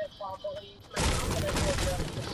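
A pickaxe strikes a wooden fence with a sharp crack.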